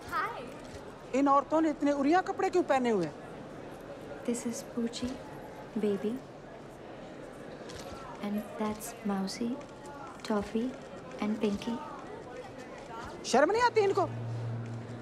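An elderly woman speaks sharply and loudly.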